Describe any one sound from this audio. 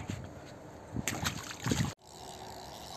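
A fish splashes in water.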